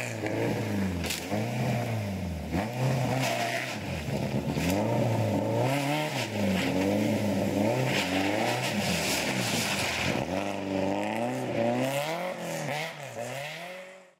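A rally car engine revs hard, rising and falling in pitch.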